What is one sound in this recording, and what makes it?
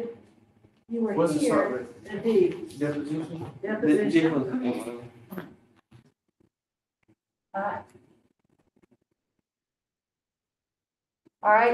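A woman speaks calmly to a class, heard through a microphone.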